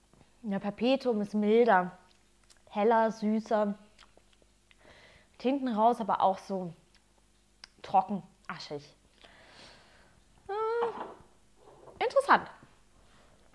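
A young woman speaks calmly and expressively, close by.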